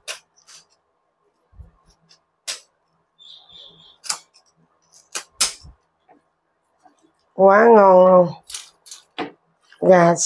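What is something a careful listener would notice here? Kitchen scissors snip through chicken pieces with sharp clicks.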